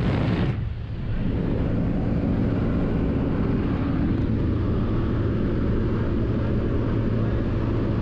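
Wind roars through an open aircraft door.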